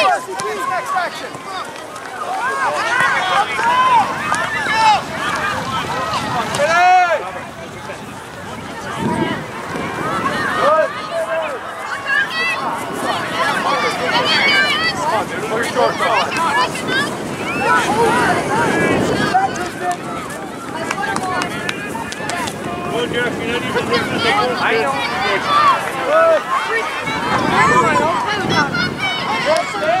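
A crowd of spectators shouts and cheers outdoors, some way off.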